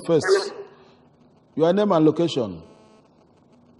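An elderly man speaks in short bursts, close to a microphone.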